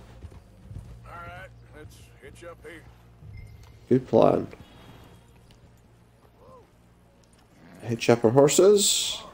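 Horse hooves thud on a dirt path.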